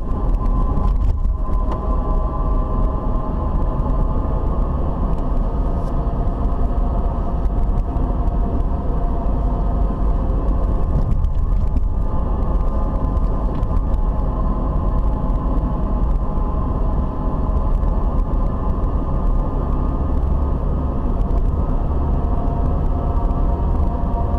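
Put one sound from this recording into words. A car engine hums steadily from inside the cabin while driving.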